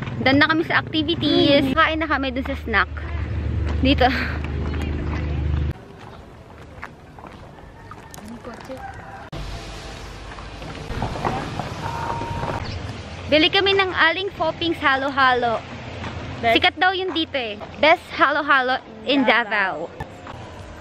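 A young woman talks cheerfully and close by.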